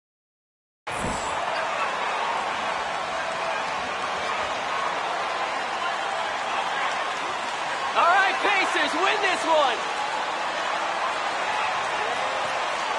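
A large indoor crowd murmurs steadily in an echoing arena.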